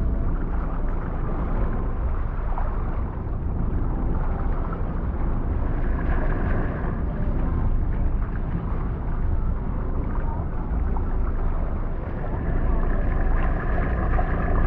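Dolphins whistle and click underwater.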